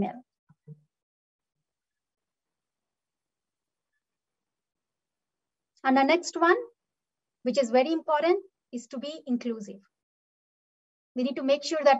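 A young woman speaks calmly through a microphone, in short phrases with pauses.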